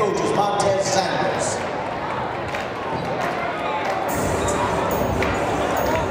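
A large crowd chatters and cheers in an echoing gym.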